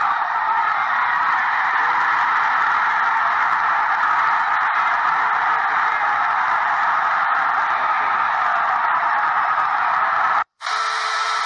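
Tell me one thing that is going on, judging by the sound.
A large crowd cheers and roars loudly.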